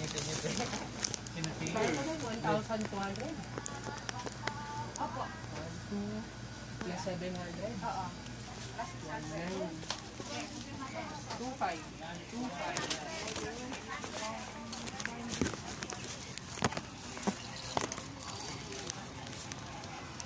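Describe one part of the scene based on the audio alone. Men and women chatter close by in a busy crowd.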